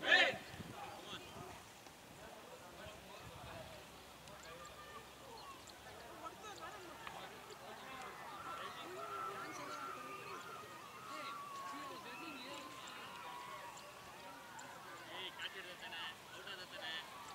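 Men talk casually at a distance outdoors.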